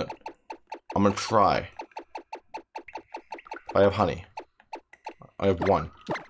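Short electronic menu blips tick rapidly.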